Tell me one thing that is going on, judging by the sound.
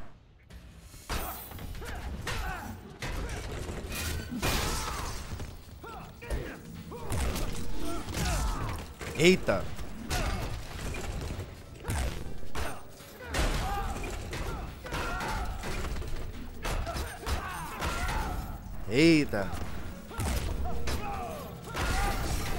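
Punches and kicks thud and crack in a video game fight.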